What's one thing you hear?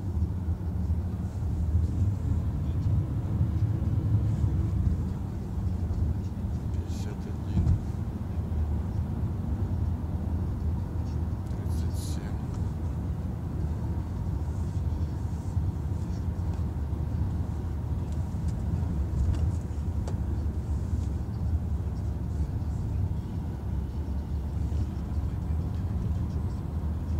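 A car engine hums steadily with road noise from the tyres inside the car.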